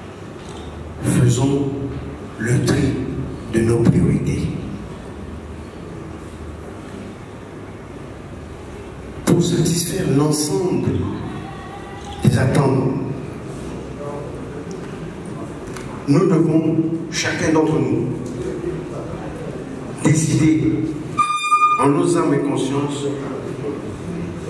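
A man speaks into a microphone in a calm, steady way.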